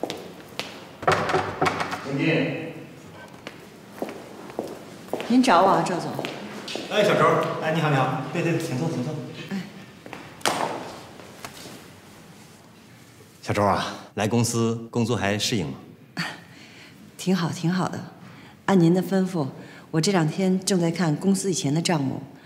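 A young woman speaks calmly and politely.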